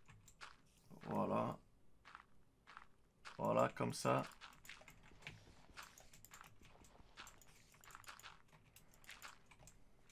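Dirt blocks crunch in short bursts as they are dug.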